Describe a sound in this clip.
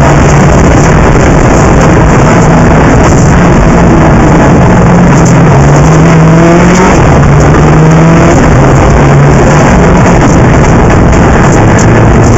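Tyres rumble loudly over a rough road.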